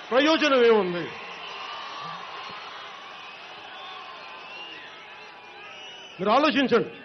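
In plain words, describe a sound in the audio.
A large crowd cheers and roars outdoors.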